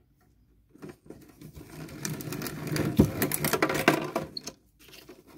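A shredder grinds and crunches through a plastic disc.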